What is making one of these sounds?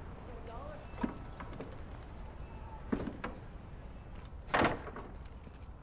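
A wooden pallet knocks and scrapes as it is moved.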